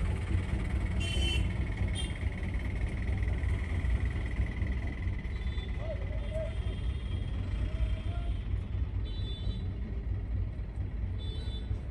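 Horns honk now and then on a busy street.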